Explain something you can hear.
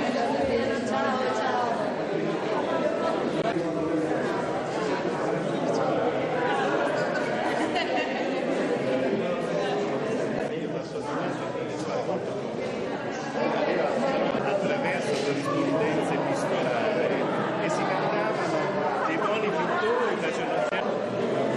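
A crowd of men and women chatter in a room.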